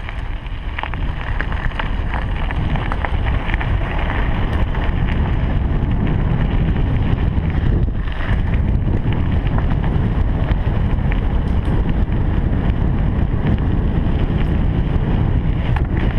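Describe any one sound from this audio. Bicycle tyres crunch steadily over gravel.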